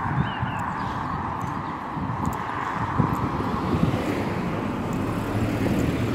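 A car approaches and passes close by on the road.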